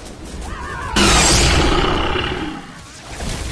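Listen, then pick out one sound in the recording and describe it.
A monster lets out a loud, harsh screech.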